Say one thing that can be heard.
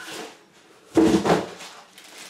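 A box thumps down onto a table.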